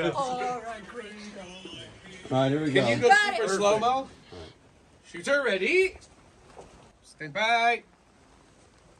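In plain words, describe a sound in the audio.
Men talk and laugh loudly nearby.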